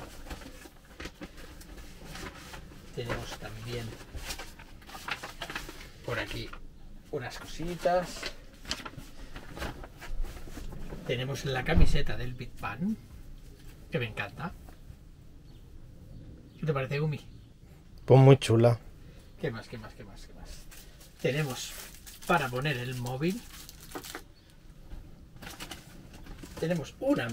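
Paper and plastic bags rustle as a man rummages.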